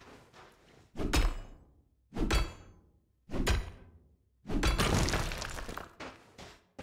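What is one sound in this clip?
A pickaxe strikes a rock with heavy, ringing blows.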